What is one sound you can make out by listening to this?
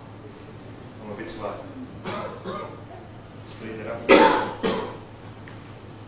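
A man speaks briefly at a lectern.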